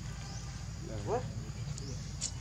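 A young monkey gives a short, high squeal close by.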